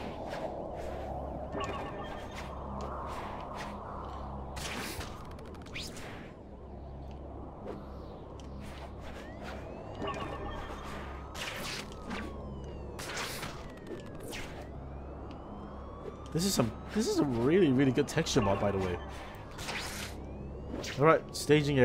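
Webs shoot out with sharp, quick zipping sounds again and again.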